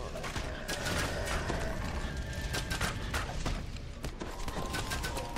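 Weapons strike in a fight.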